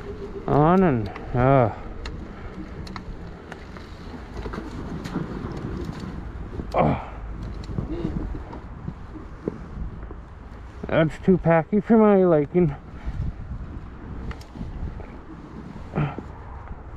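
Bike tyres crunch and rumble over packed snow.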